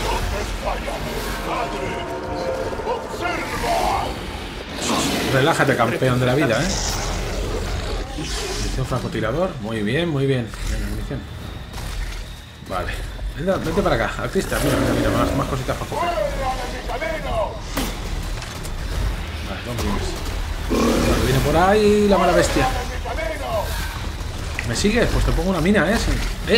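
Footsteps splash through shallow water and rustle through grass.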